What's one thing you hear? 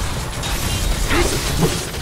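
Energy blasts burst with a loud crackle.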